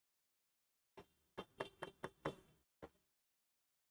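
A pen taps and scratches lightly on a board.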